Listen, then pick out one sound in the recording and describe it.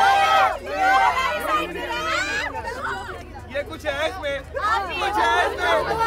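A group of women sing loudly together close by.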